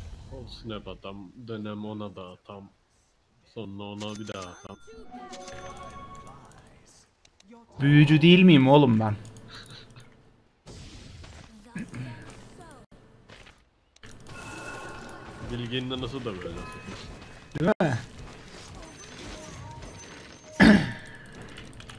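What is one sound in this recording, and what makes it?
Magic spells whoosh and chime in a video game.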